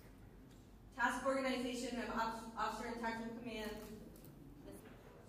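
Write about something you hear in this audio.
A woman speaks into a podium microphone.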